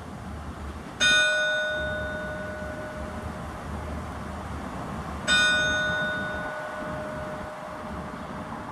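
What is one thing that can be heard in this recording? A bell in a tower rings twice, each stroke ringing out and slowly fading.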